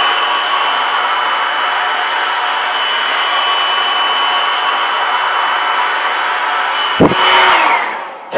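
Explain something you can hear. A hair dryer blows steadily with a whine, then switches off.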